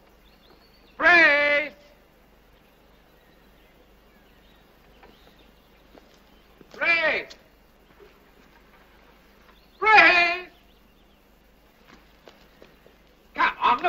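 A woman calls out loudly several times, from a short distance.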